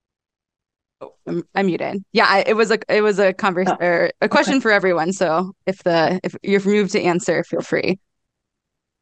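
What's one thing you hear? Another young woman speaks with animation over an online call.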